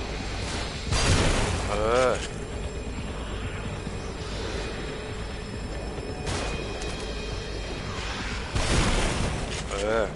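A gun fires loudly.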